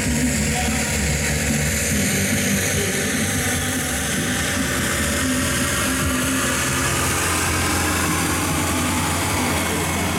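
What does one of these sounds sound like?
A diesel tractor labours under full load, pulling a weight-transfer sled.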